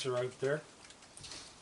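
A man speaks briefly nearby in a high, coaxing voice.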